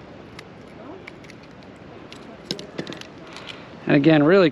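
Metal pliers click against a fishing hook.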